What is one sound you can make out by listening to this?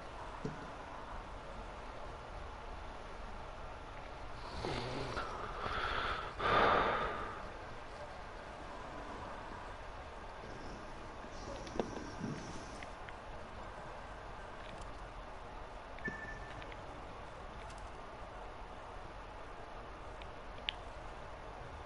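A man talks quietly into a microphone close by.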